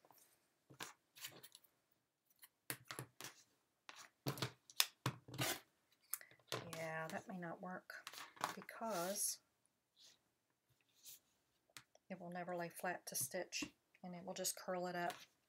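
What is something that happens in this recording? Fabric rustles as it is handled and smoothed.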